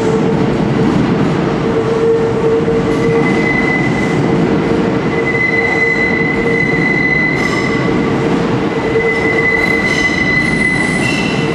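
A train rumbles into the station and rolls past close by.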